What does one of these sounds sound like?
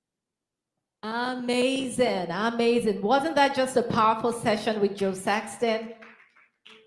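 A woman speaks with animation into a microphone, heard close.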